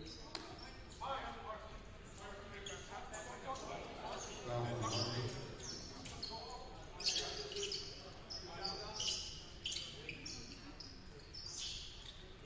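Players shout to each other across the court.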